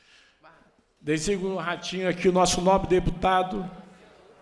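A man speaks loudly and clearly through a microphone in an echoing hall.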